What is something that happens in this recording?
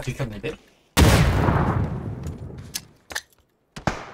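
A grenade explodes with a deep boom that echoes away.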